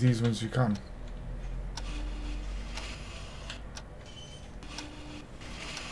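A wooden drawer slides open.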